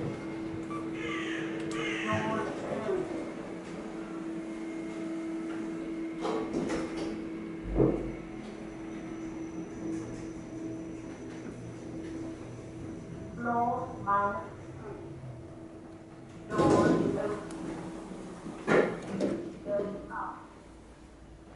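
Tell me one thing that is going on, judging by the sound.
An elevator chime dings several times.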